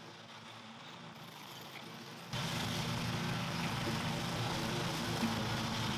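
A ride-on mower engine hums steadily nearby.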